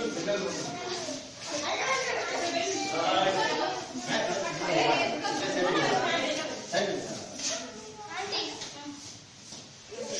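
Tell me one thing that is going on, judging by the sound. Men and women chatter and call out indoors.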